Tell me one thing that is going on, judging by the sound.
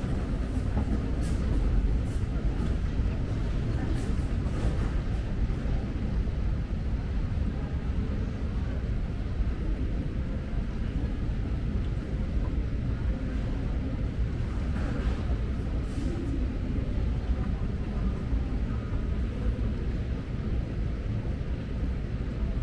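A moving walkway hums and rumbles steadily in a large, echoing hall.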